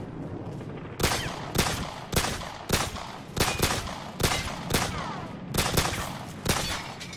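A pistol fires shot after shot in quick succession, echoing in a hallway.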